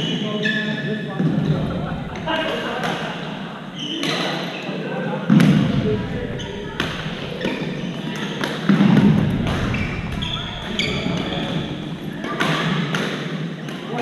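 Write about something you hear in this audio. Shuttlecocks are struck with rackets with sharp pops.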